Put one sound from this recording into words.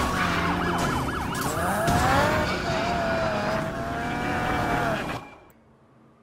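Tyres screech as a car drifts.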